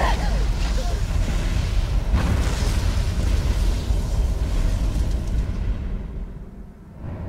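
A large fire roars.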